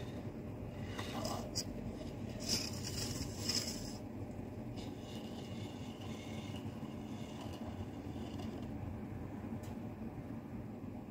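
A small metal gauge slides and scrapes along the edge of a metal sheet.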